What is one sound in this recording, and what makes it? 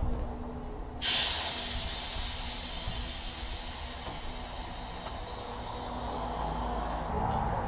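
Compressed air hisses steadily from a blow nozzle.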